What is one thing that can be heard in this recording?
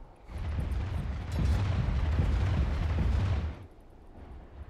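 Game battle effects rumble and crash loudly, then fade.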